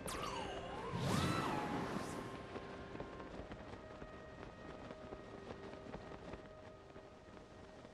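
Wind rushes past as a figure glides through the air.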